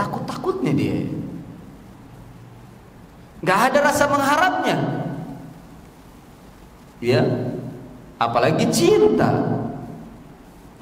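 A middle-aged man speaks calmly into a microphone in a reverberant room, with pauses between phrases.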